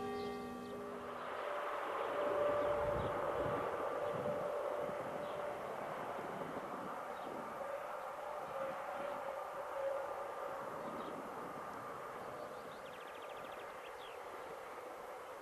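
A train rumbles along in the distance outdoors.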